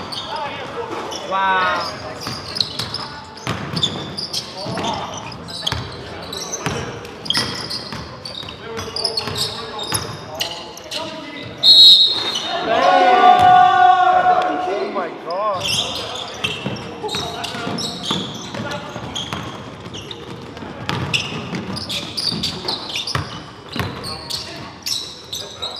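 A basketball bounces with hollow thuds in an echoing hall.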